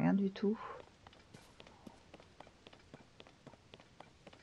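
Footsteps tap lightly on stone.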